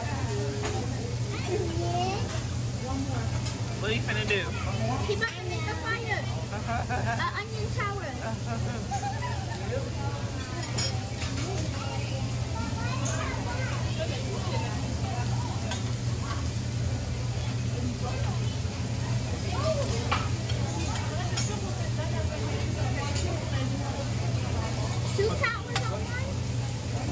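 Metal spatulas scrape and clack on a hot griddle.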